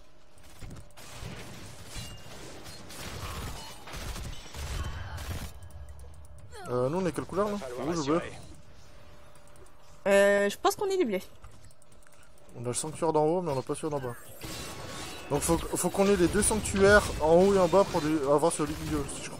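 Spells and weapons clash and blast in a busy fight.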